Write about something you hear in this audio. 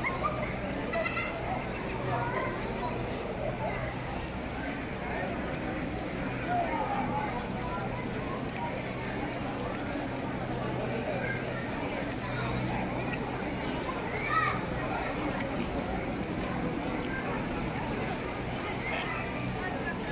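A large crowd murmurs and talks outdoors.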